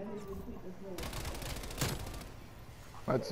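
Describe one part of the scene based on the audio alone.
Gunfire rattles in quick bursts.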